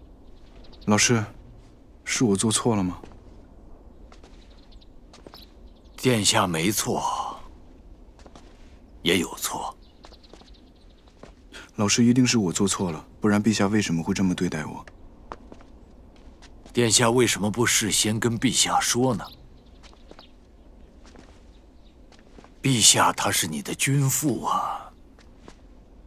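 A middle-aged man speaks calmly and earnestly, close by.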